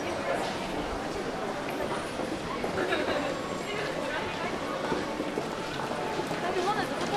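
Footsteps of many people patter on a hard floor.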